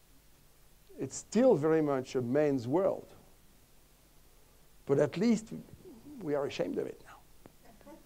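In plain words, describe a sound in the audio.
An older man speaks with animation into a microphone, in short bursts with pauses.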